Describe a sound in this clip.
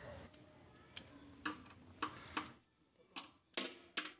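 A wrench clicks on a metal clamp.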